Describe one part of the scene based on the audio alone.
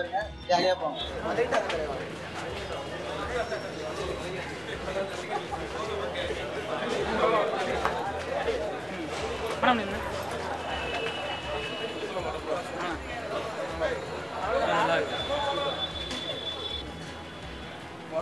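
Several men talk in a crowd outdoors.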